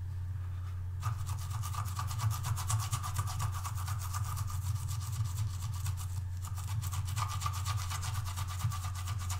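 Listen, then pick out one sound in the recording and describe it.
A brush scrubs quickly against a rubber pad.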